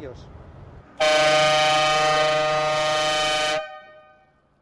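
A van horn blares loudly in a long steady blast.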